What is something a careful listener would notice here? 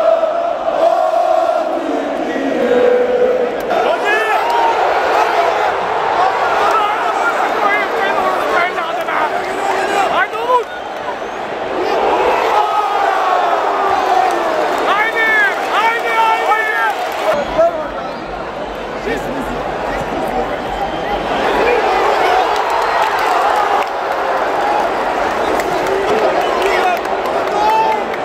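A large stadium crowd sings and chants loudly all around.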